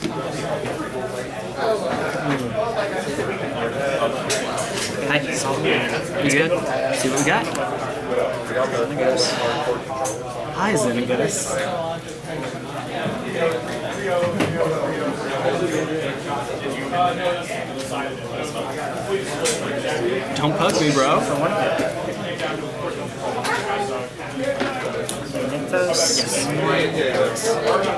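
Playing cards riffle and shuffle by hand.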